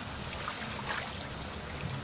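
A fish splashes at the water surface.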